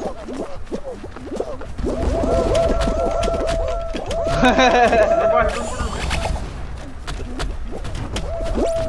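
Cartoonish bouncy sound effects boing and chirp rapidly, over and over.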